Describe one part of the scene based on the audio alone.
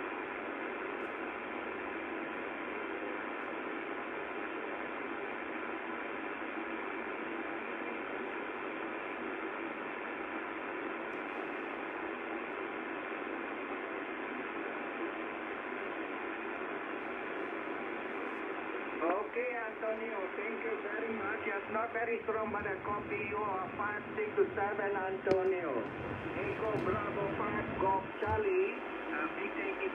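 A shortwave radio hisses and crackles with steady static through its loudspeaker.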